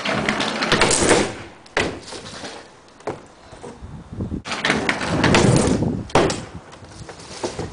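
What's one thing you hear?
Scooter wheels roll and rumble over a wooden ramp.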